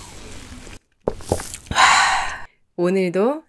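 A young woman exhales with a satisfied sigh close by.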